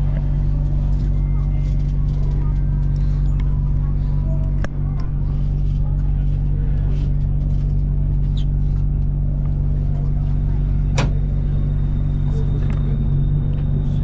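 A train hums steadily as it pulls out of a station.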